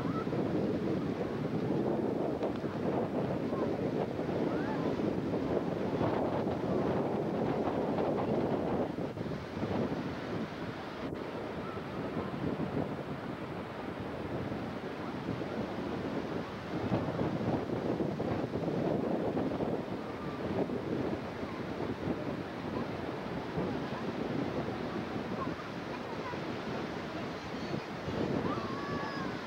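Small waves wash onto the shore.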